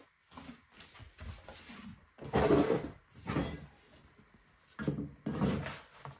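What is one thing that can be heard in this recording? Paper rustles and crinkles as a sheet is lifted and laid down.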